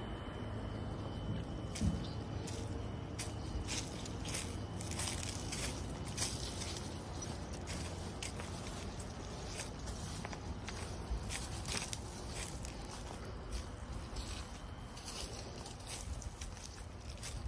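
Footsteps crunch on dry leaves and dirt outdoors.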